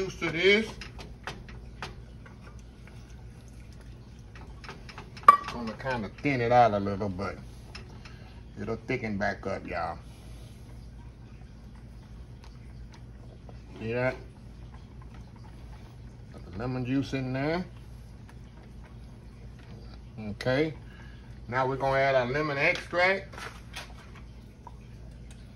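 A whisk stirs thick liquid in a metal pot.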